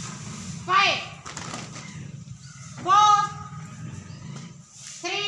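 A group of children shout a count together outdoors.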